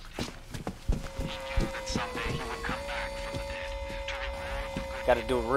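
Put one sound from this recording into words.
A steady electronic radio tone hums and bends in pitch as it is tuned.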